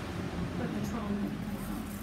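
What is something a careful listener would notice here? A razor scrapes lightly over stubble.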